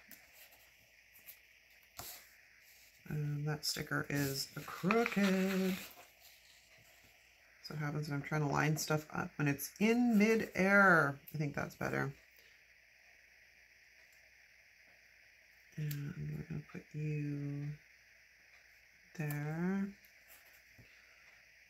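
Paper rustles softly under hands.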